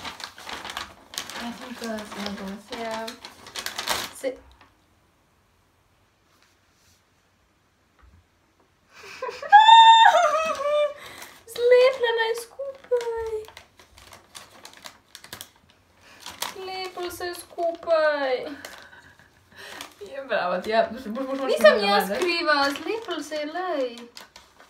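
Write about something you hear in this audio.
Paper crinkles and rustles as it is unfolded.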